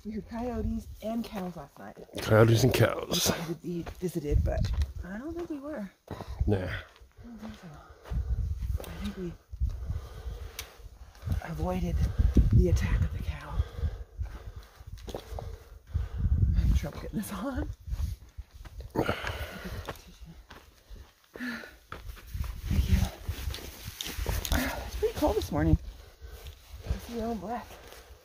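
Footsteps crunch on dry dirt and gravel.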